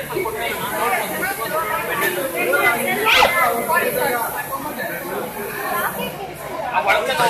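Men and women talk loudly over each other nearby.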